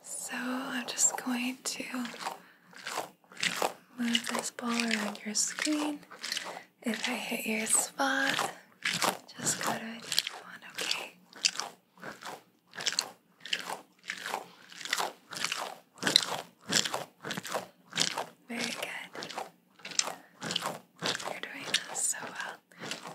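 A young woman whispers softly and close to the microphone.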